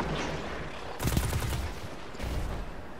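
Electric crackling zaps loudly.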